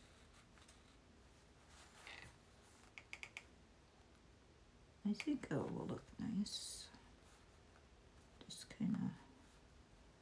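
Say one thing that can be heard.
Fabric rustles softly as a needle draws thread through cloth.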